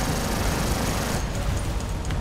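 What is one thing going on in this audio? Cannons fire in a rapid burst.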